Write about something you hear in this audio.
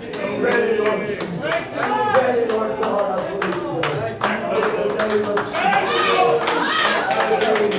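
A group of men and women pray and sing aloud with fervour in an echoing room.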